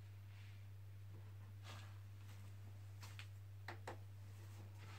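A guitar thumps softly as it is set down on a padded chair.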